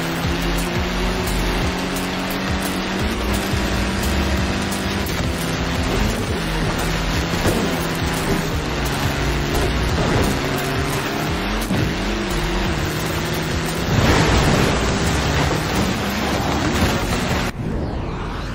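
Tyres skid and crunch over dirt and gravel.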